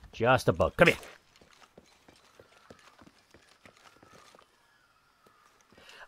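Footsteps scuff softly on rock.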